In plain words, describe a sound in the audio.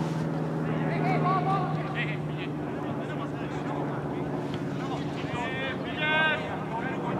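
Men shout across a field outdoors.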